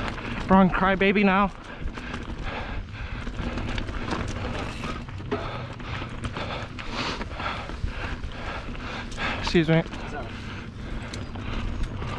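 Bicycle tyres crunch over dry leaves and a dirt trail.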